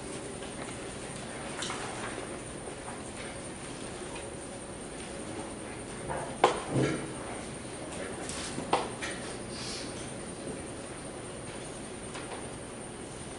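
A woman speaks softly nearby.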